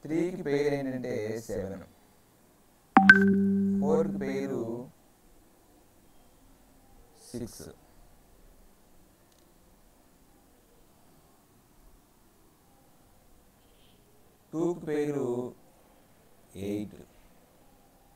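A man speaks calmly into a microphone, explaining in short phrases.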